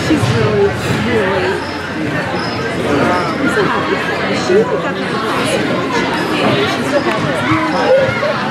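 Young women chatter and call out across a large echoing rink.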